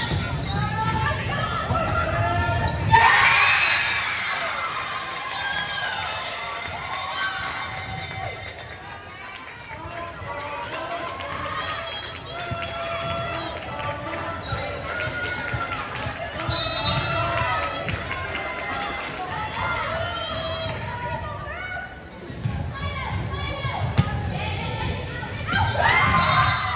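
Young women call out and cheer in a large echoing gym.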